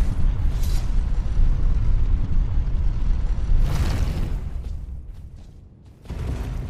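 Heavy armored footsteps thud on a stone floor in a large echoing hall.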